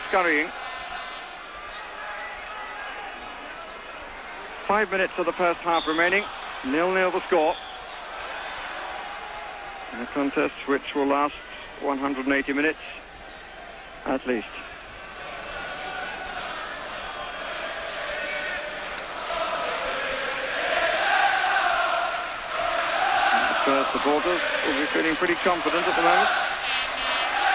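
A stadium crowd roars steadily, swelling louder later on.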